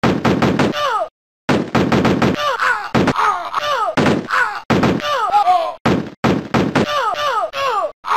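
Small guns fire in quick bursts.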